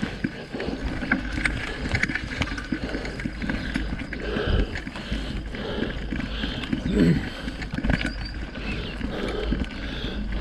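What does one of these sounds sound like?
A bicycle rattles and bumps over a rough dirt trail.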